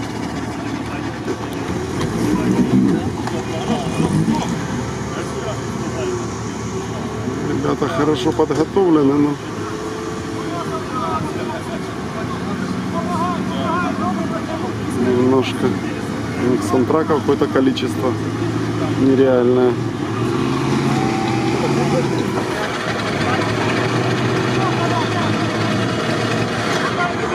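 An off-road vehicle's engine revs and strains.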